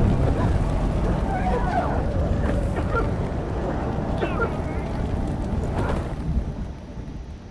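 Fire roars and crackles loudly.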